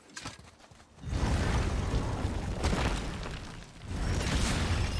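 Heavy wooden doors grind open.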